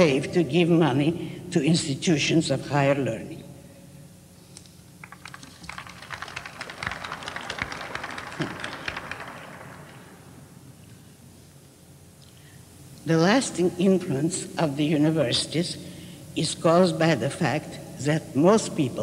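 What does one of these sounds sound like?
An elderly woman reads out expressively into a microphone.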